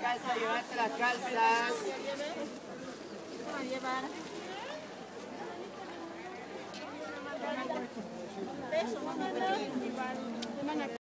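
A woman speaks nearby with animation.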